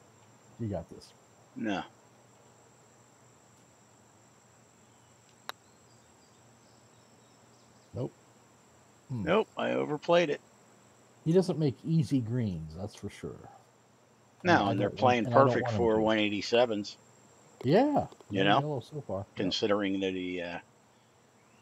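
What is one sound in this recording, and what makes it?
A middle-aged man talks with animation into a headset microphone.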